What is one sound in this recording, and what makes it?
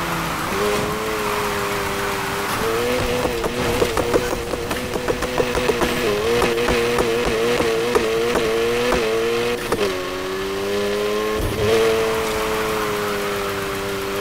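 Tyres screech as a car drifts through bends.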